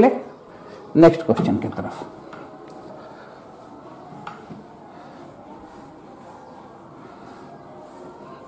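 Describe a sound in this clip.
A cloth duster rubs and squeaks across a whiteboard.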